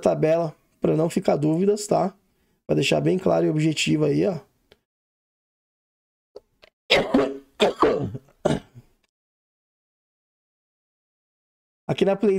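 A man talks calmly and close to a microphone, with short pauses.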